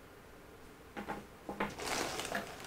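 A strap drops onto a table with a soft knock.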